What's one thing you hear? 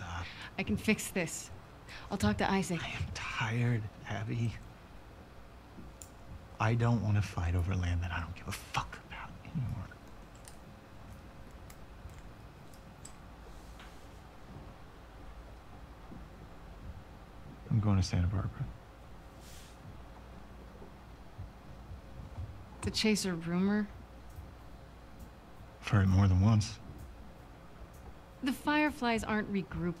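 A young woman speaks softly and earnestly.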